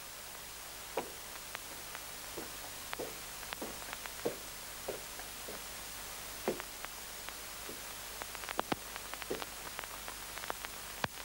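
A man's boots thud on wooden boards.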